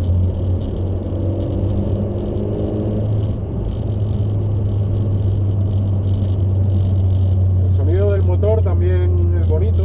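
A car engine drones steadily from inside the cabin.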